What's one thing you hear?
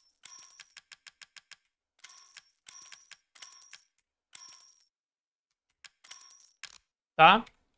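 Short electronic menu beeps and clicks sound in quick bursts.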